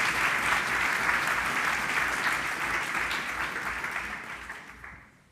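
An audience claps in a large hall, and the applause slowly dies away.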